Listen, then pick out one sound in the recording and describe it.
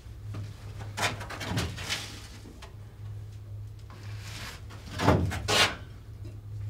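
Glass jars clink as a man handles them.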